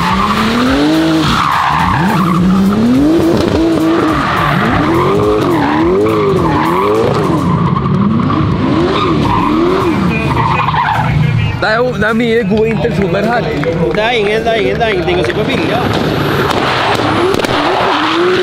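Tyres squeal on pavement.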